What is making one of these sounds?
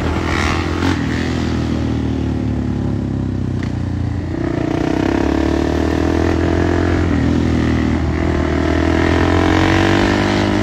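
A second motorcycle engine hums steadily underneath.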